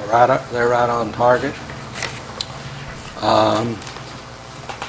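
A man speaks calmly nearby in short phrases.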